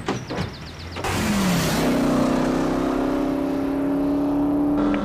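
A car roars past on a road.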